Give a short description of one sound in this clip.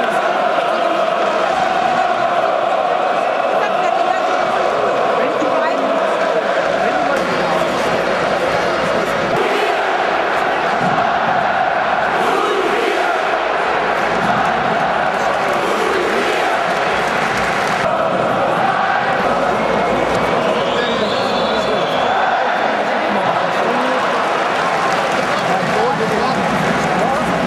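A huge stadium crowd chants and sings loudly, echoing around the stands.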